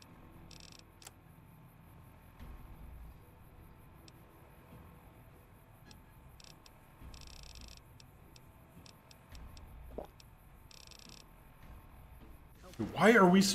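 Soft electronic clicks tick now and then.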